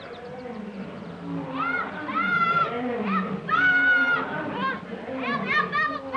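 A young boy cries out in alarm.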